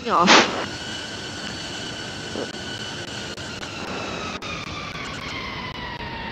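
A jet engine whines steadily as an airliner taxis, its pitch slowly sinking.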